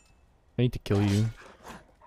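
A sword strikes a creature.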